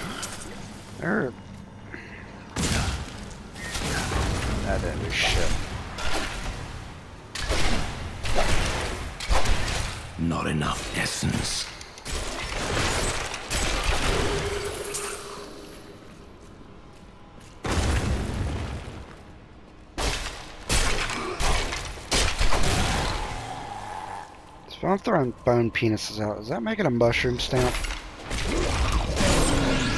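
Game weapons slash and strike enemies in quick bursts.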